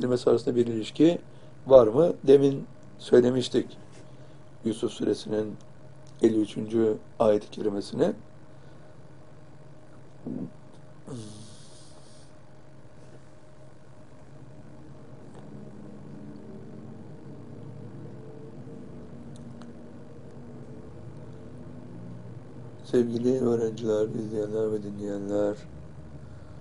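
An elderly man speaks calmly and steadily into a close microphone.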